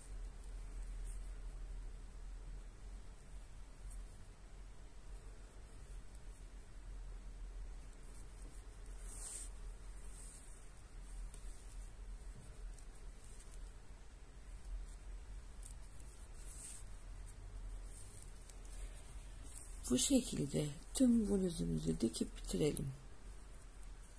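Yarn rustles softly as a crochet hook pulls it through.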